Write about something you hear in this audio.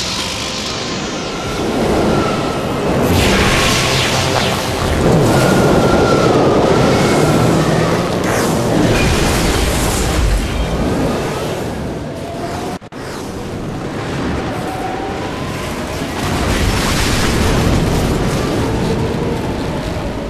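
A sandstorm wind roars and howls steadily.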